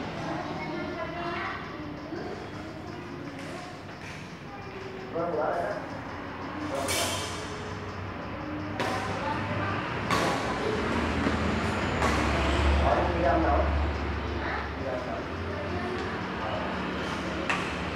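Children's voices call out and chatter nearby.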